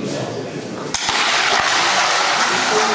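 A curling stock slides and scrapes across a hard floor.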